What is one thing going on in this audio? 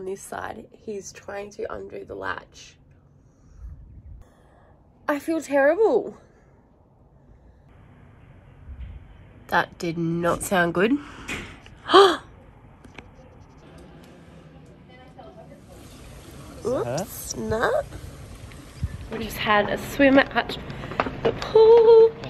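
A young woman talks with animation close up.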